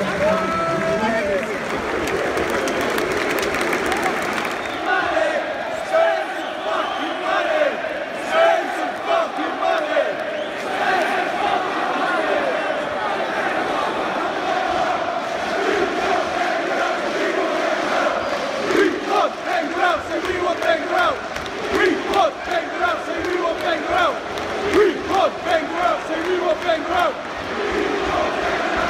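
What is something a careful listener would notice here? A large stadium crowd chants and sings loudly in unison, echoing across the open stands.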